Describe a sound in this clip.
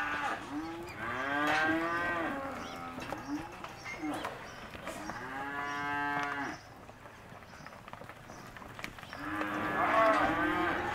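Cattle moo loudly, again and again.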